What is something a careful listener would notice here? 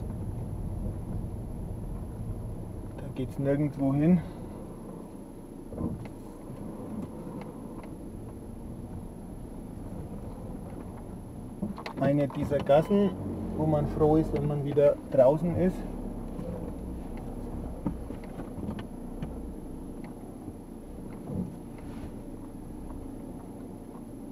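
A car engine hums low and steady as the car rolls slowly.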